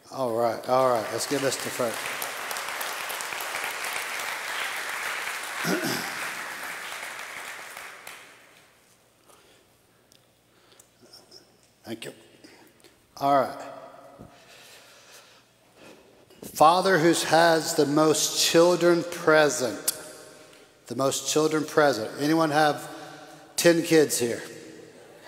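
An older man speaks with animation through a microphone in a large hall.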